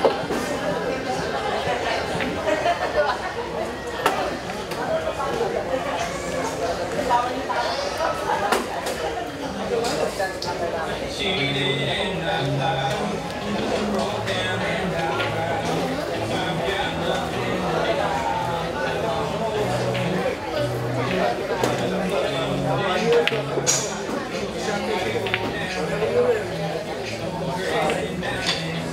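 A crowd of men chatters indoors.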